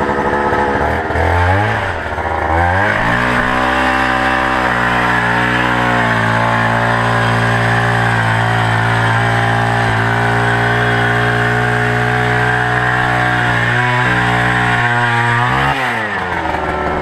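A small petrol engine sputters to life, roars steadily, then winds down.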